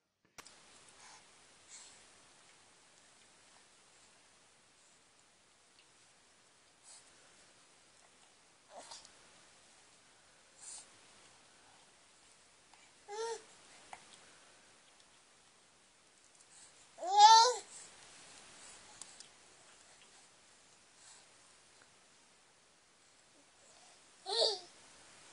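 A baby squeals and babbles up close.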